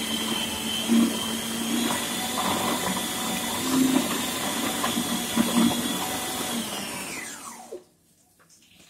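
A food processor motor whirs steadily, then winds down and stops.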